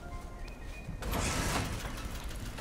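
A metal lever is pulled with a rattling mechanical clank.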